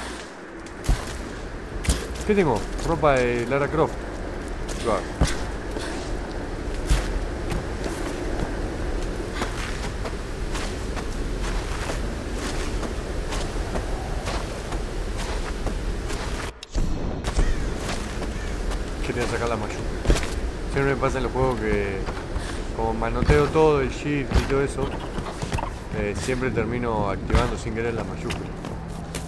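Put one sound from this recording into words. Footsteps thud on wood and earth.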